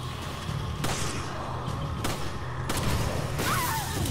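A pistol fires a few shots.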